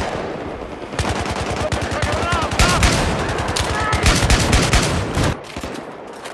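Rapid gunfire bursts loudly and close.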